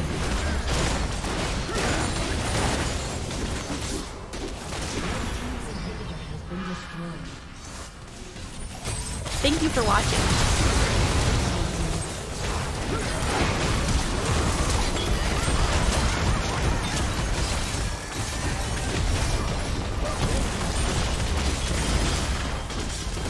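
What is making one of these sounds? Game spell effects crackle and boom during a battle.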